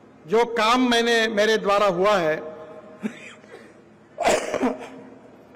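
A middle-aged man speaks with animation through a microphone and loudspeakers.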